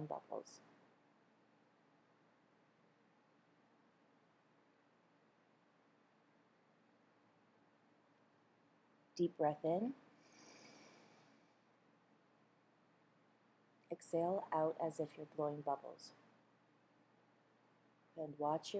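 A middle-aged woman speaks calmly and close to a microphone, in short bursts with pauses.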